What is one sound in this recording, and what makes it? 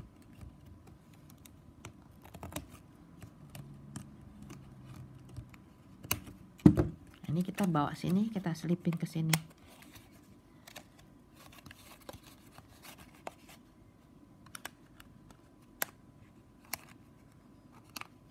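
Stiff plastic strips rustle and click as they are handled.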